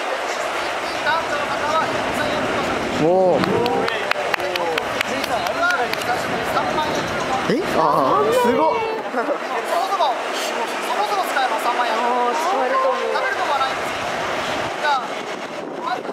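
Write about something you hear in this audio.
A middle-aged man speaks loudly to a group outdoors.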